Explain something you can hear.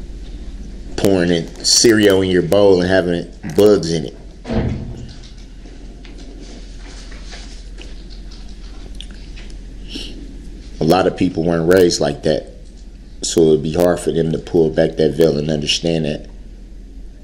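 An adult man speaks in short bursts with long pauses.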